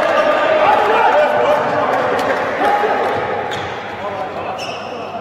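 Sports shoes squeak on the court floor.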